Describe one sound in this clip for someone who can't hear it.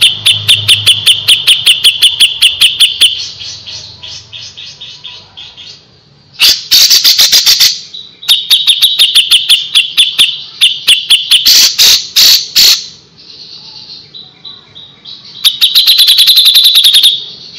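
A songbird sings rapid, sharp repeated chirping trills.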